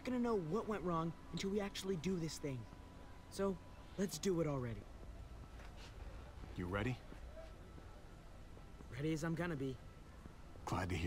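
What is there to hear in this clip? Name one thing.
A young man speaks firmly, close up.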